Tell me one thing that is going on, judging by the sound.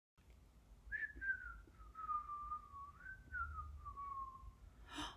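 A young woman whistles a slow, wavering tune close by.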